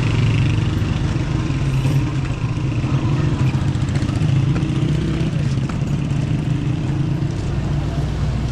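A motor tricycle engine putters nearby, then fades.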